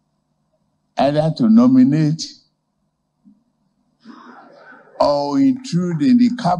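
An elderly man speaks slowly and firmly into a microphone.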